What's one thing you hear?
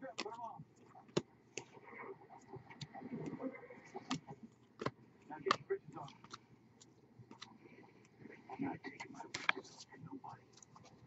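Trading cards flick and tap against each other in quick, soft clicks.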